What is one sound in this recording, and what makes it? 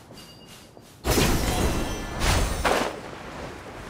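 A glider unfolds with a loud whoosh.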